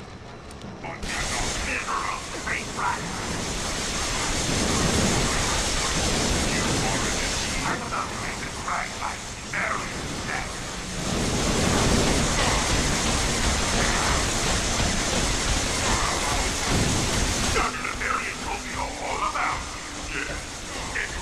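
Energy blasts burst and explode.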